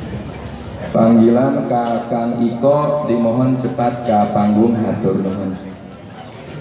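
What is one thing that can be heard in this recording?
A man chants loudly into a microphone over loudspeakers.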